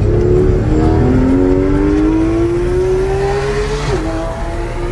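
A car engine revs up with rising pitch as the car accelerates.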